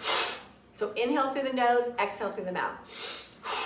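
A middle-aged woman speaks briefly and calmly, close by.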